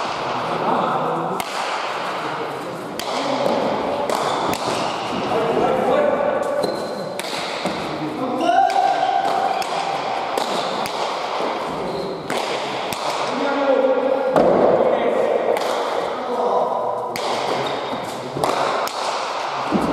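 Shoes squeak and pound on a hard floor as players run.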